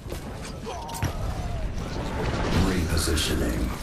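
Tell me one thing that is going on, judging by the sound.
An energy blast bursts loudly in a video game.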